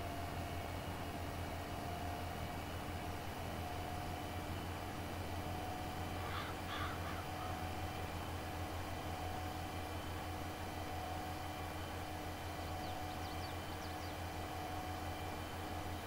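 A combine harvester engine hums steadily.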